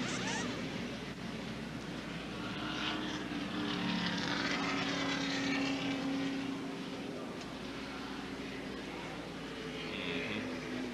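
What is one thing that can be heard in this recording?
A pack of race cars rumbles slowly in a group.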